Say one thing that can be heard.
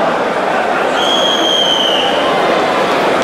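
A referee blows a whistle.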